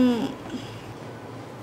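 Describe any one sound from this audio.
A woman speaks briefly, close by.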